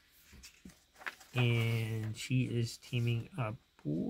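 A page of a book turns with a papery rustle.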